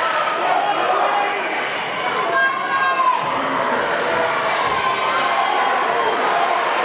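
A crowd cheers and shouts loudly.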